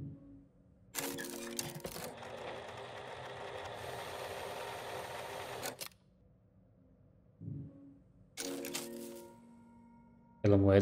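A jukebox mechanism whirs and clicks as it moves a record.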